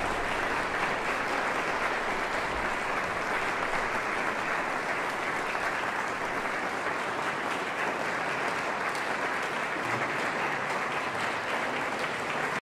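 A seated audience murmurs and chatters in a large echoing hall.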